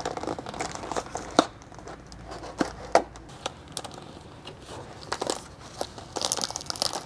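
A cardboard box rustles and scrapes as it is opened by hand.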